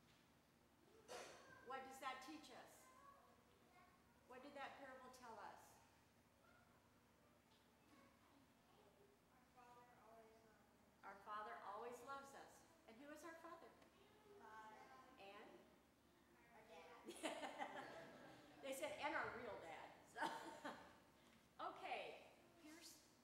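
Young children sing together.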